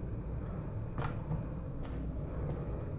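A door latch clicks as a door swings open.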